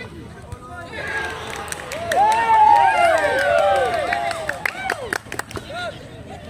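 A crowd of young people cheers and shouts loudly.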